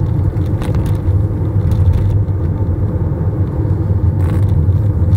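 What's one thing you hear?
A car engine hums steadily, heard from inside.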